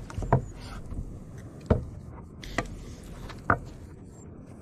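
A knife taps against a wooden board while cutting meat.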